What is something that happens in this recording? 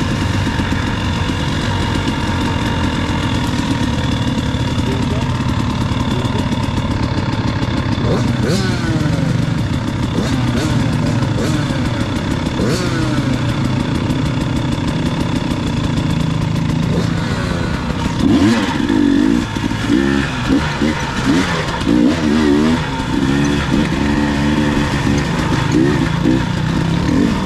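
Dirt bike engines idle and rev nearby, rising and falling in pitch.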